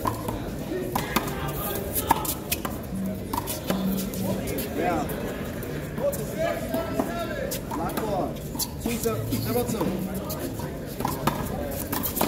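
A ball smacks hard against a wall.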